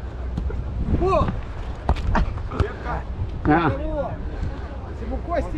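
Young men and women shout and call out outdoors.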